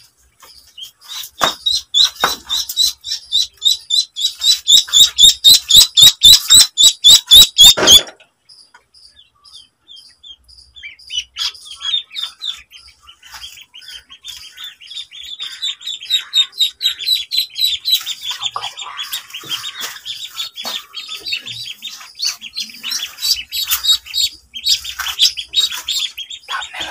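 Ducklings peep loudly and rapidly, close by.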